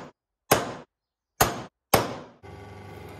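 A metal punch is struck with sharp, ringing knocks.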